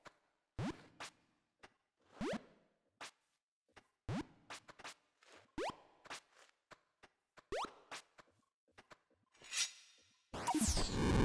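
Quick game footsteps and jump sounds tap along.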